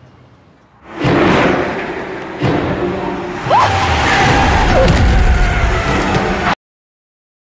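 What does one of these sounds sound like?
A car engine roars as a car speeds along.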